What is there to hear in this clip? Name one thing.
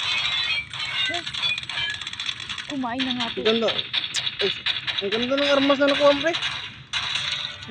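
Game gunfire rattles rapidly from a phone speaker.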